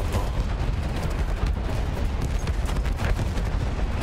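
Explosions rumble.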